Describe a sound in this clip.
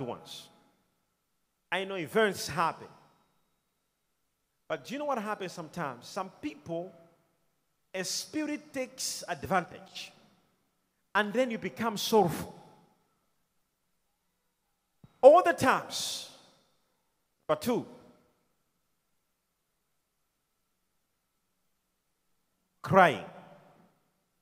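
A man preaches with animation into a microphone, in short bursts with pauses.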